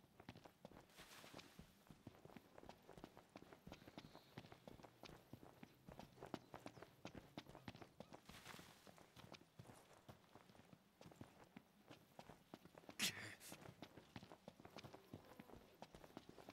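Footsteps thud quickly on dry ground.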